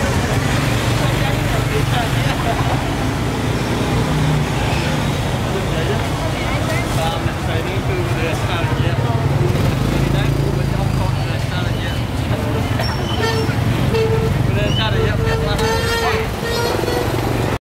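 Motorbike engines hum along a busy street outdoors.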